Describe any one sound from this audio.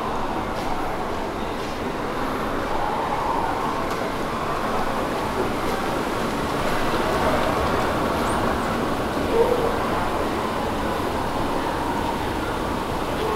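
A moving walkway hums and rumbles steadily in a large echoing hall.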